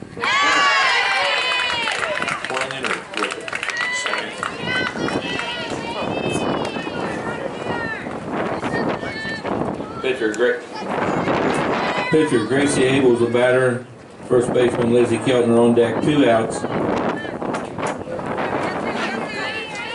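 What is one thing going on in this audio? Young women shout and cheer loudly nearby, outdoors.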